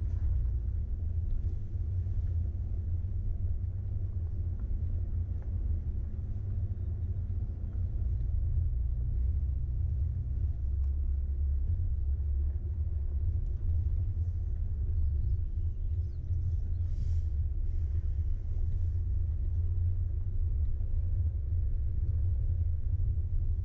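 Tyres crunch over a rough gravel track.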